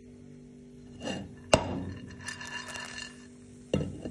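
Corn kernels rattle and slide in a shaken metal pan.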